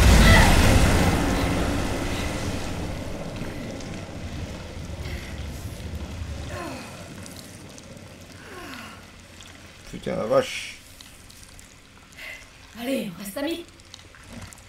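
A young woman groans and pants in pain close by.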